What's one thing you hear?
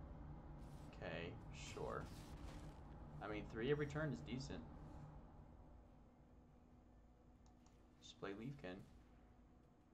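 A young man speaks casually into a headset microphone.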